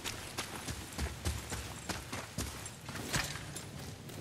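Heavy footsteps crunch on snow and stone.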